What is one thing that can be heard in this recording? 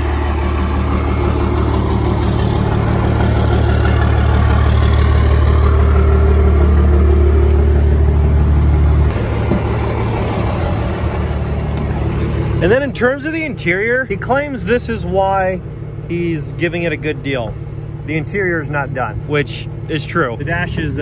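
A diesel truck engine idles with a steady low rumble.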